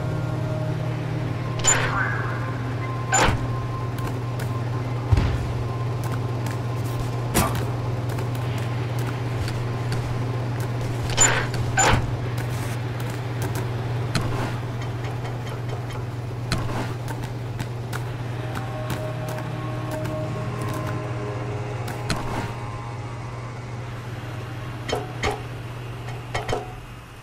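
A low mechanical hum drones steadily.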